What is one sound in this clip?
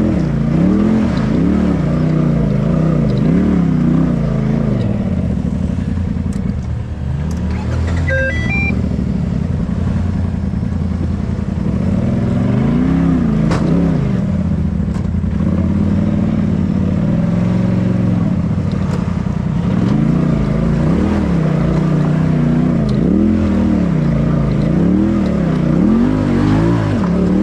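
An engine revs up and down.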